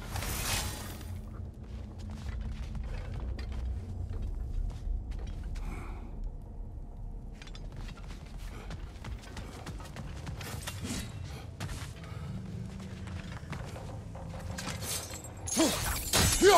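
Heavy footsteps crunch over rocky ground.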